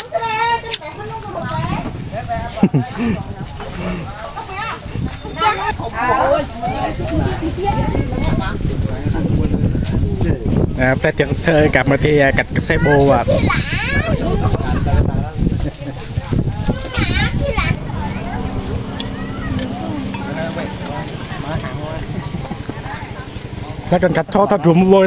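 Men, women and children talk and chatter nearby.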